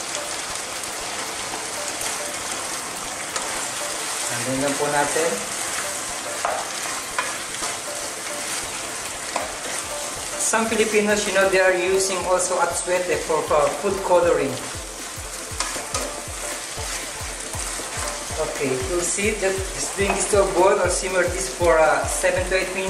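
A spatula stirs and scrapes through food in a pan.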